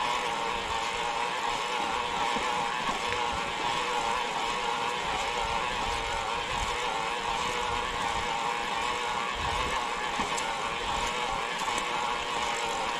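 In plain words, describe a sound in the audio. Bicycle tyres roll and rumble over a rough path.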